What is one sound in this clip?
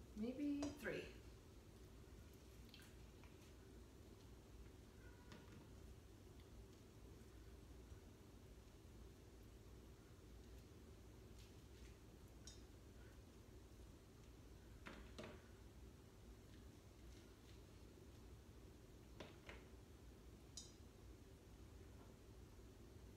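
Hands crumble and rub food together.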